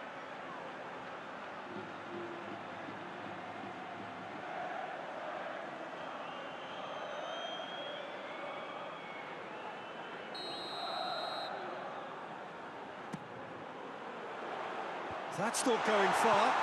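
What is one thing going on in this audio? A large stadium crowd roars and cheers steadily, swelling louder near the end.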